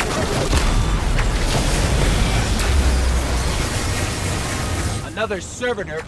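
A video game shotgun fires an energy blast that explodes with a roaring boom.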